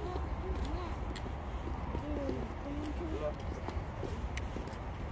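A toddler's small shoes patter on paving stones.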